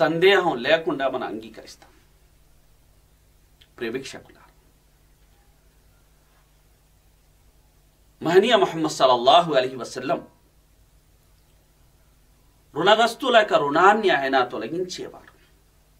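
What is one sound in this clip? A middle-aged man speaks calmly and expressively into a close microphone, pausing between phrases.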